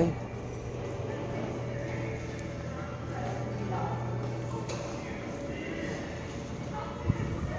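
A steady low hum fills a large hall.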